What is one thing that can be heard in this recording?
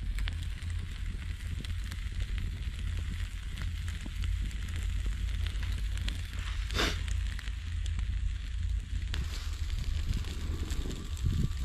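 Meat sizzles and crackles over a fire.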